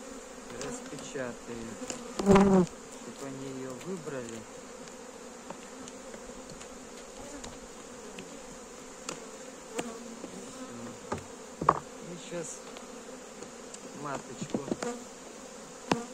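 A hive tool scrapes and knocks against wooden frames.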